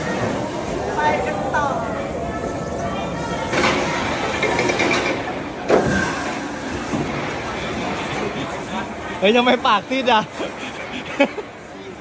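Riders on a swinging amusement ride scream and shriek.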